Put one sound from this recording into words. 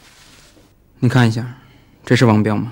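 A man asks a question in a calm voice.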